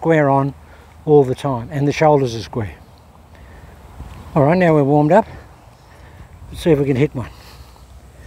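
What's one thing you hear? A man talks, explaining calmly.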